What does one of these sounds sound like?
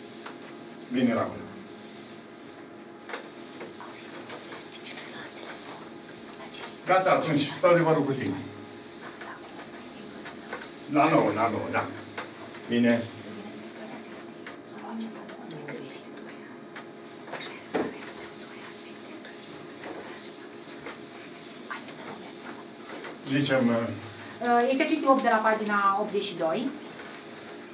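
A man talks on a phone in short bursts.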